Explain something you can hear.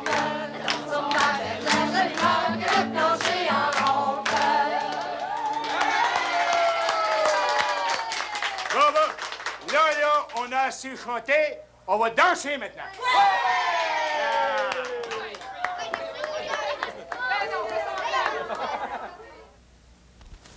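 Young women and men sing a bouncy, cheerful song together.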